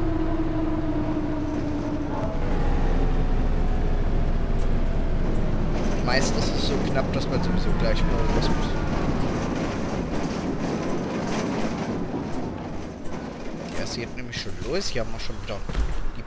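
A bus engine hums and whines as the bus drives along.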